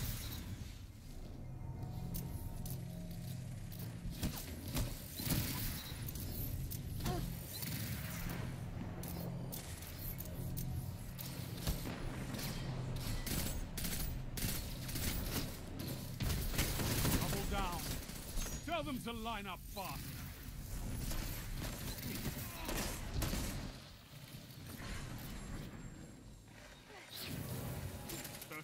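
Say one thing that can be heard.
Guns fire in rapid, sharp bursts.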